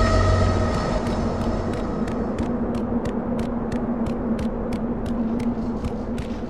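Footsteps patter quickly and evenly on stone.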